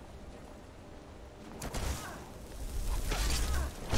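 Weapons clash as warriors fight nearby.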